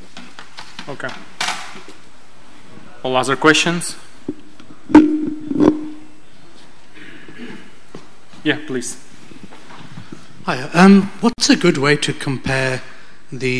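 A man speaks calmly through a microphone in an echoing hall.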